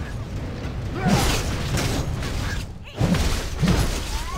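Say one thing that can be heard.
Blades strike hard in a fight.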